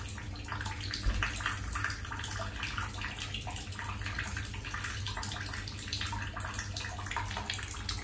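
A parrot splashes water in a shallow bowl.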